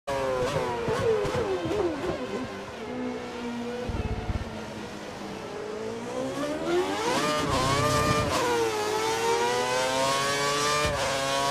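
A racing car engine whines, its pitch dropping through gear changes and rising again as it speeds up.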